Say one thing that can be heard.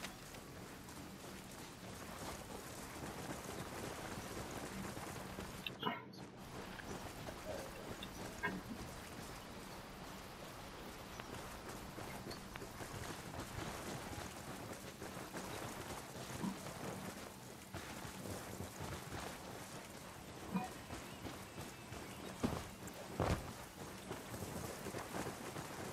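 Footsteps crunch quickly over rough ground outdoors.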